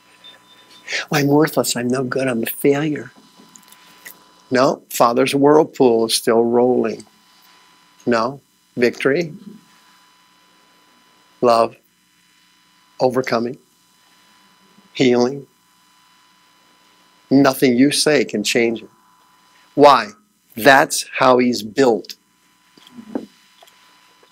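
A man speaks with animation through a microphone, pausing often.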